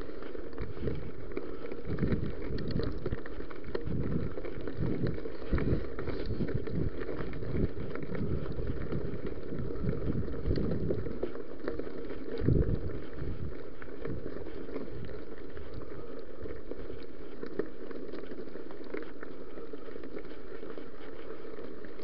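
Bicycle tyres crunch and rattle over a gravel trail.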